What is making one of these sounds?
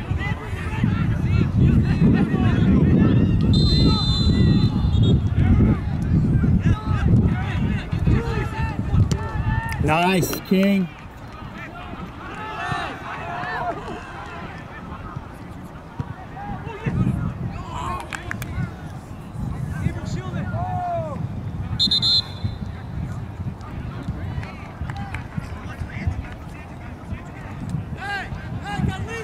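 Players shout to each other across an open field, far off.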